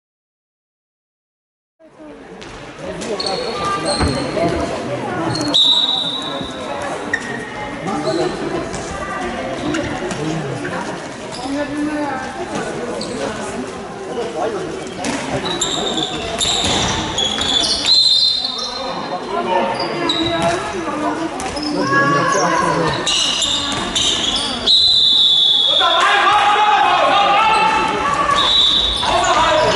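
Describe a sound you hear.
A ball bounces on a hard floor.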